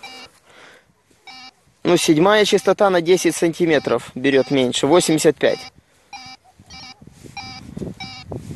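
A metal detector gives short electronic beeps.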